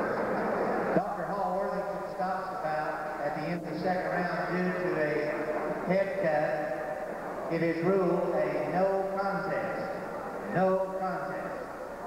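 A man announces through a loudspeaker in a large hall.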